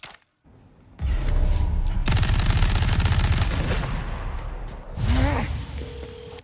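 An explosion bursts with a deep rumble.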